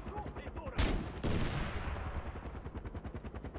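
A pistol shot cracks and echoes away.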